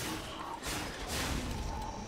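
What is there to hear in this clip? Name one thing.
A blade slashes into a body with a heavy hit.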